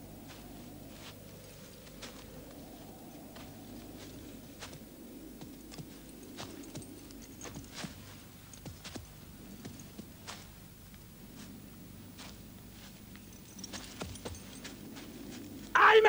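Footsteps crunch slowly on dry ground outdoors.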